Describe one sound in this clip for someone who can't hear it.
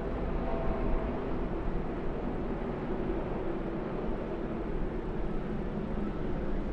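A pack of racing trucks roars past with loud, steady engines.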